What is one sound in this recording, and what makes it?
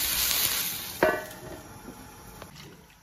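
A metal lid clanks onto a wok.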